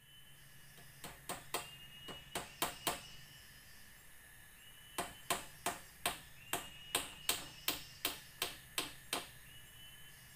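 Sharp knocks ring out from hammering on wood.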